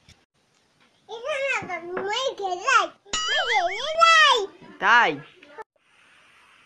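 A young child talks playfully close by.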